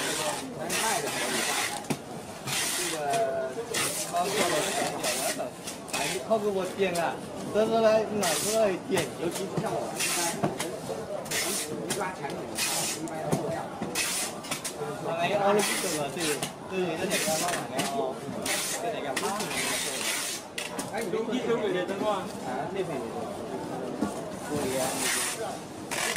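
Packing tape screeches in loud bursts as it is pulled off a dispenser.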